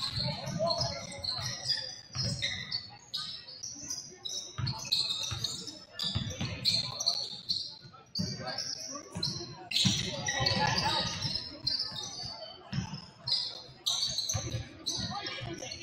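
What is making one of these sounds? A crowd murmurs in the stands.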